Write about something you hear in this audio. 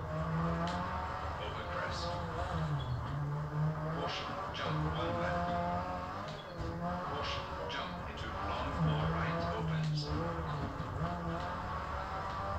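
A rally car engine revs hard, rising and dropping in pitch with gear changes.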